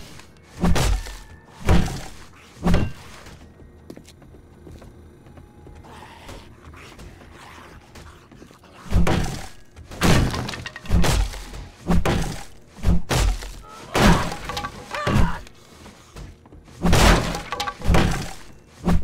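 A spiked club bashes heavily against a wooden door, over and over.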